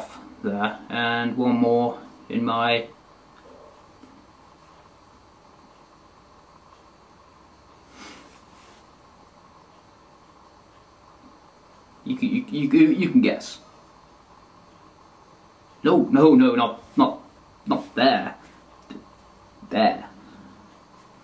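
A young man speaks calmly and close by, in short bursts with pauses.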